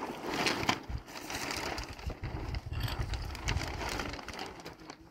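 Wind blows outdoors in gusts.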